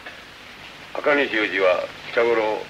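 A man speaks with animation among a group of men.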